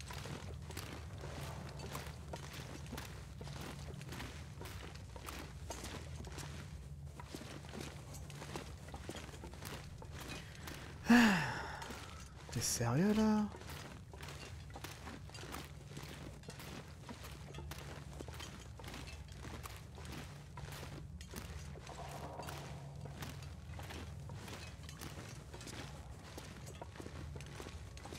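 Footsteps crunch on rocky ground at a steady pace.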